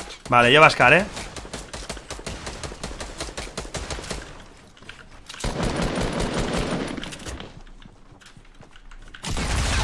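Wooden planks clatter as they are built in a game.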